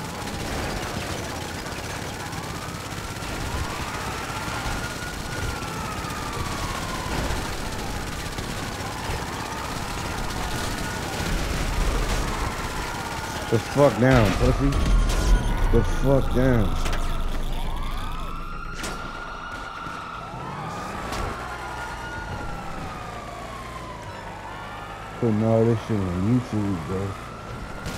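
A police siren wails steadily nearby.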